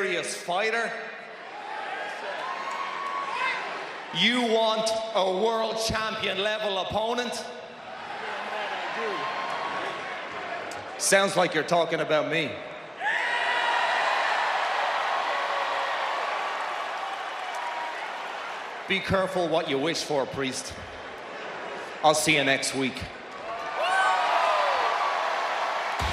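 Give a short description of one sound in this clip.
A large crowd cheers and chants.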